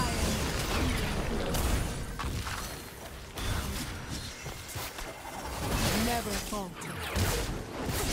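Magic spells whoosh and burst with booming impacts in a fast fight.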